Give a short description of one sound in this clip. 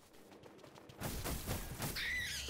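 A blade slashes and strikes.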